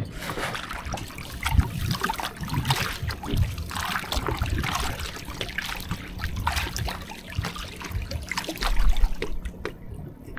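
Water splashes and drips as a fishing net is hauled out of a river.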